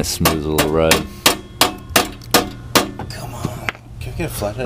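A hammer bangs on metal in quick sharp blows.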